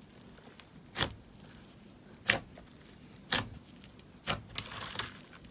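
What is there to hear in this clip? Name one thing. Fingers press fluffy slime, popping small air pockets.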